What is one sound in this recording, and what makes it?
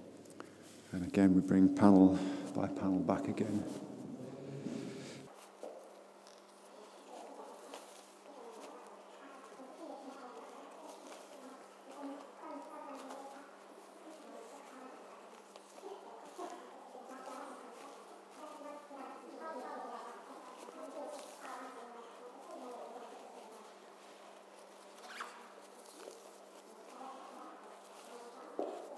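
A group of people murmur and chat quietly in an echoing hall.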